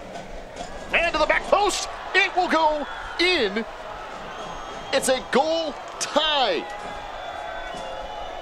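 A small crowd cheers outdoors.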